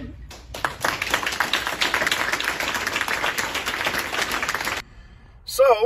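People clap and applaud.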